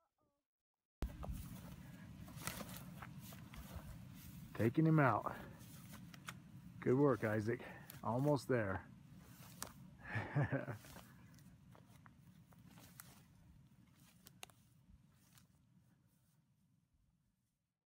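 A deer carcass drags and rustles through dry grass.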